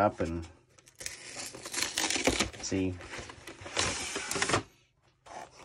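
A cardboard box lid slides and scrapes open.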